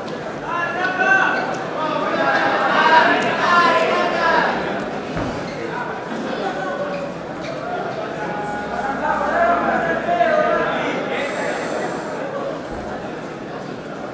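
A crowd of men and women shouts and cheers loudly nearby.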